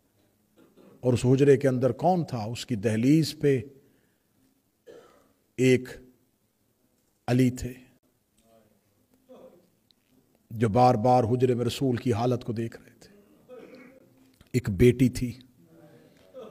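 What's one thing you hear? A man speaks calmly into a microphone in bursts, with pauses.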